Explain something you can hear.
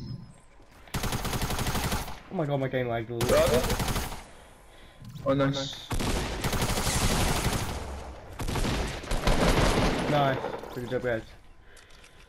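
Guns fire in rapid bursts of shots.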